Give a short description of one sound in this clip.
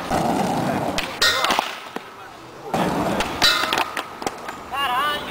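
A skateboard clatters and smacks onto concrete.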